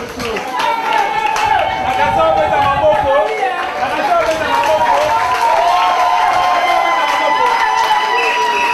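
Music with singing plays loudly through loudspeakers.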